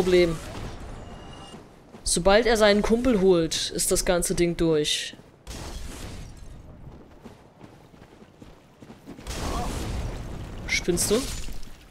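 A fireball bursts with a whooshing roar.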